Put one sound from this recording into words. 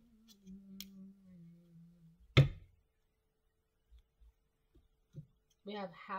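Cards tap softly as they are laid on a table.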